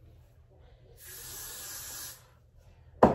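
A spray can hisses in a steady burst.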